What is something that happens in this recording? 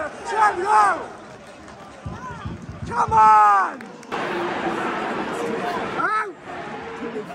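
A large crowd of men shouts and chants loudly nearby, outdoors.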